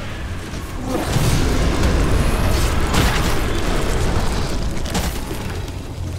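Heavy booming impacts rumble.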